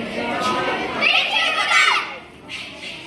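Young girls shout sharply together.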